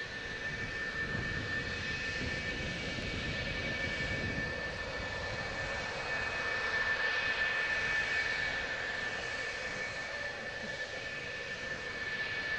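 Jet engines whine steadily with a high-pitched hum and roar.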